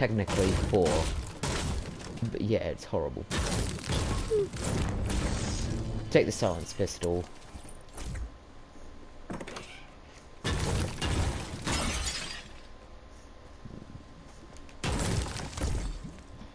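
A pickaxe smashes into wood with sharp cracks.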